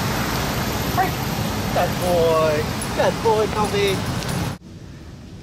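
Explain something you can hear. A man calls out short commands to a dog.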